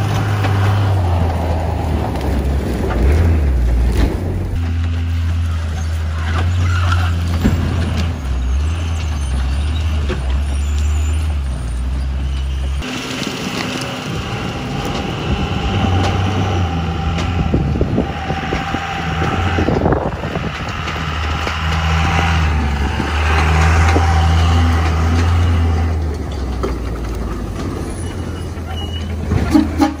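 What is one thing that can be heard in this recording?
Tyres crunch over dry grass and dirt.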